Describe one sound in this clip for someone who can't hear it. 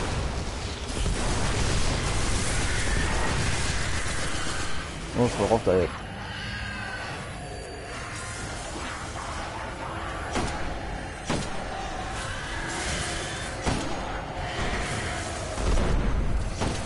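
Gunfire and explosions boom in a video game.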